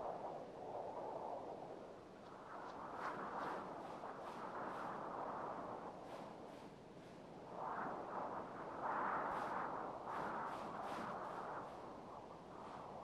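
Wind gusts and roars steadily outdoors in a snowstorm.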